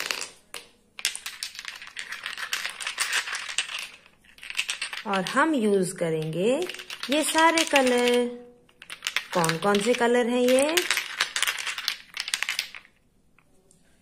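Small glass jars clink and rattle together in cupped hands.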